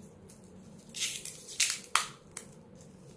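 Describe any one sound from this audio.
Metal watch links click and rattle in hands.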